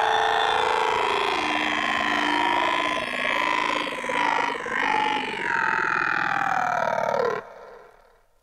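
Electronic music with warbling synth tones plays from a spinning record, then stops abruptly.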